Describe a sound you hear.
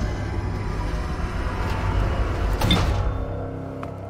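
A heavy metal lid grinds open.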